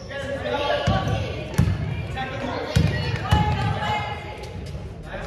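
Young girls shout and call out across the echoing hall.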